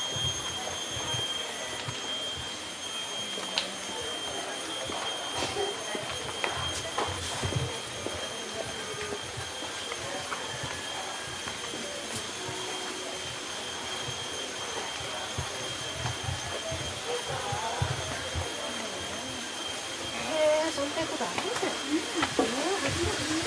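Footsteps fall on a paved path.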